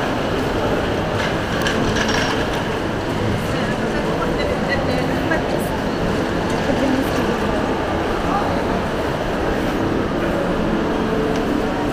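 Shopping cart wheels rattle over a hard floor.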